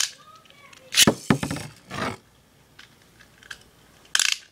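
A spinning top whirs and rattles on a plastic dish.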